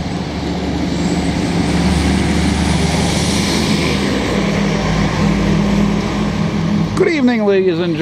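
A city bus engine rumbles nearby as the bus pulls away.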